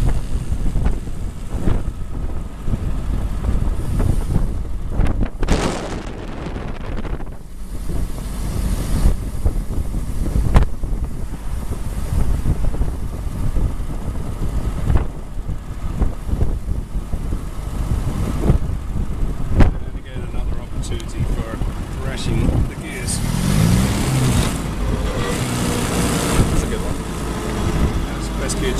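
An old car engine chugs and rumbles steadily.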